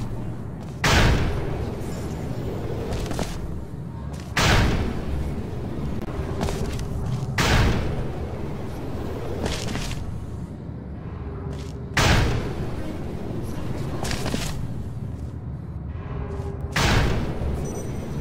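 A portal gun fires again and again with sharp whooshing bursts.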